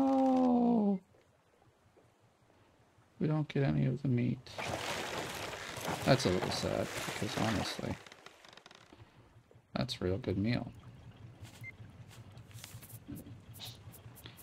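Water laps and splashes gently in the open sea.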